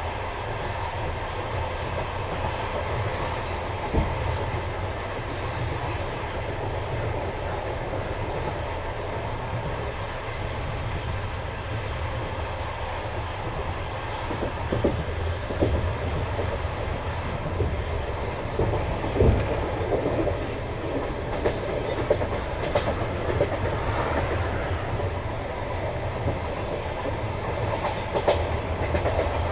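A train rumbles steadily along the rails.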